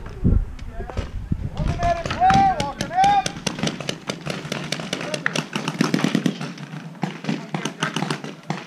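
A paintball marker fires rapid sharp pops close by.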